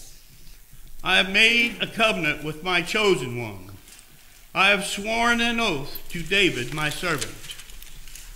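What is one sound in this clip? An elderly man reads aloud calmly through a microphone in an echoing room.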